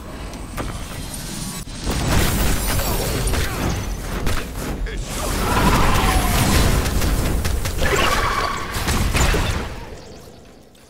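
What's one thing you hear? Magic blasts burst and crackle in a loud fight.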